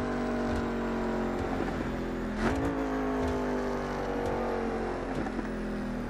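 A V8 sports car engine drones at high speed as the car slows.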